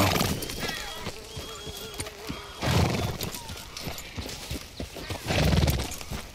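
Horse hooves clop on dirt at a slow walk.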